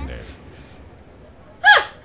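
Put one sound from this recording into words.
A young woman laughs into a close microphone.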